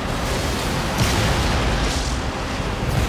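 A spacecraft roars past overhead.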